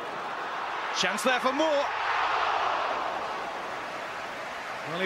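A large crowd swells into a loud cheer and then settles.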